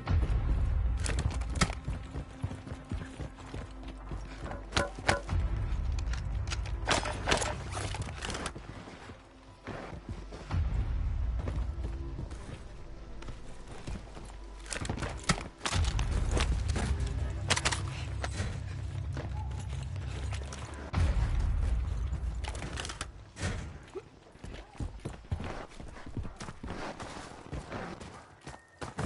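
Quick footsteps crunch on gravel.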